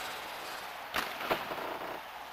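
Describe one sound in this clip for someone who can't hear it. A hockey stick slaps a puck.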